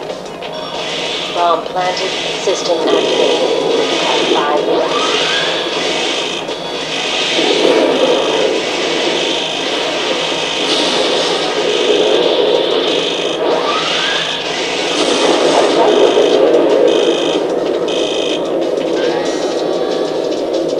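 A machine's engines roar and whine steadily.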